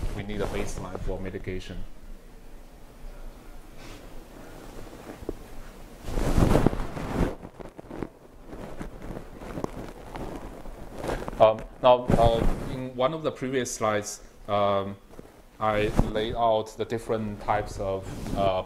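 A young man lectures calmly in a large room.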